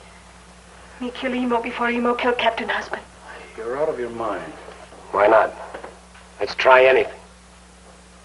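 A young woman speaks softly and tenderly, close by.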